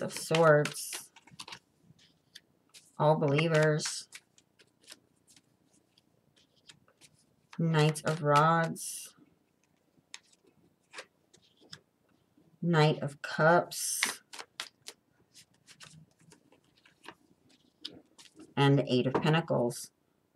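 Playing cards are laid down one by one with soft taps.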